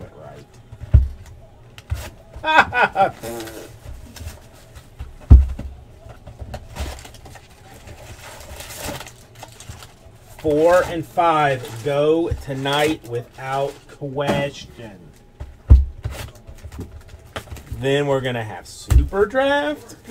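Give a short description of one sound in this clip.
Cardboard boxes thump down on a table.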